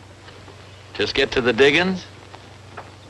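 A man answers in a cheerful voice.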